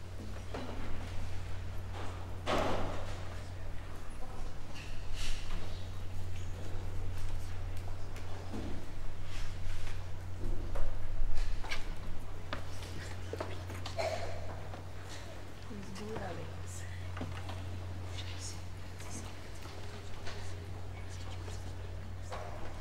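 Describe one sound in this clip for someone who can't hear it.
People shuffle and move about in their seats.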